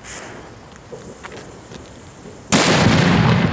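A firework fountain hisses and crackles.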